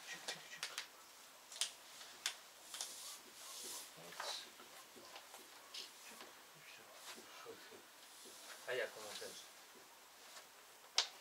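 A plastic pipe knocks and clatters as it is handled.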